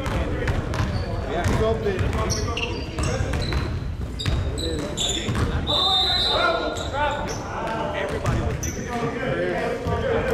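Sneakers squeak sharply on a wooden floor in a large echoing gym.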